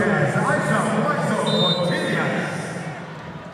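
A volleyball bounces on a hard floor.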